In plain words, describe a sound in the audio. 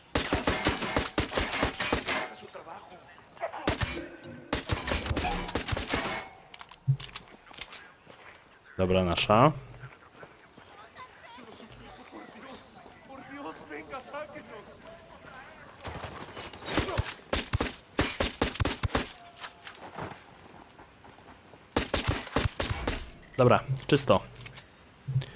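Rapid pistol shots crack loudly, in bursts.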